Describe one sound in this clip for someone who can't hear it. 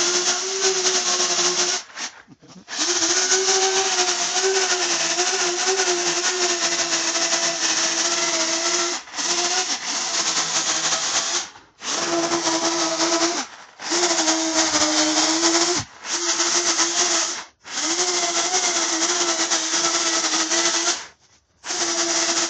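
An electric chainsaw whines loudly, cutting into a tree trunk in short bursts.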